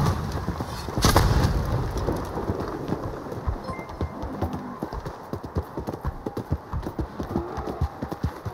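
A horse's hooves drum on a wooden bridge.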